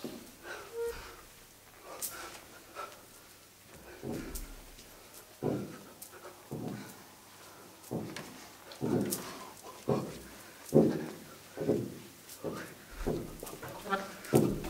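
Feet thump and slide on a wooden floor.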